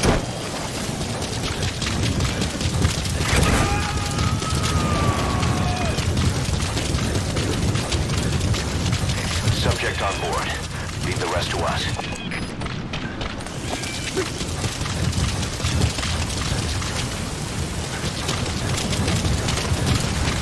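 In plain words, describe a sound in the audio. Footsteps run quickly over hard ground and dirt.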